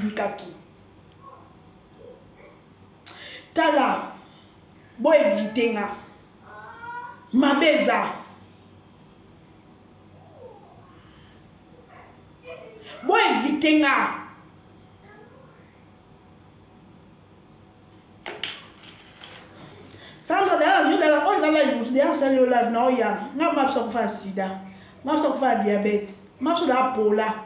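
A young woman speaks with animation close to a microphone, in bursts with pauses.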